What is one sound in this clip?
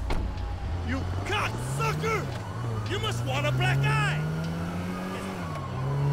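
A car engine revs as the car drives off.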